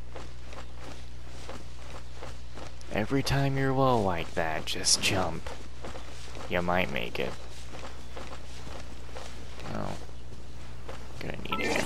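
Footsteps swish through tall grass at a quick running pace.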